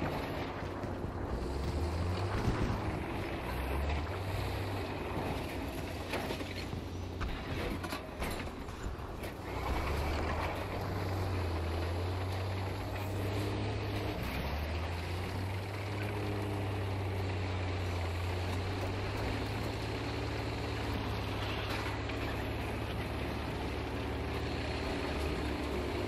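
Tank tracks clank and rattle over rough ground.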